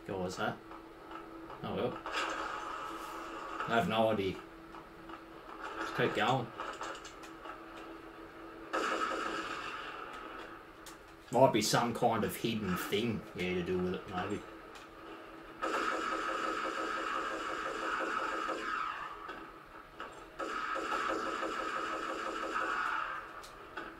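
Gunfire and explosions ring out from a video game.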